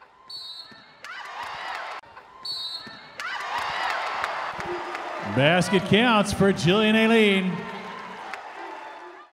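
A crowd cheers loudly in a large echoing arena.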